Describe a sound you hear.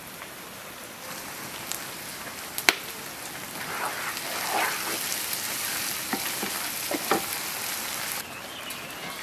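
Greens sizzle and crackle in hot oil.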